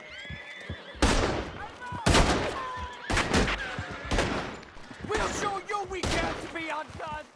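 Gunshots crack loudly, one after another.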